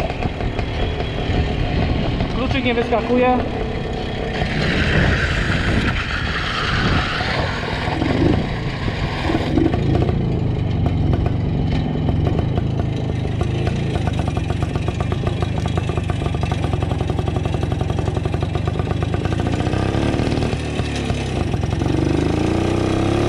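A small motorcycle engine putters steadily up close.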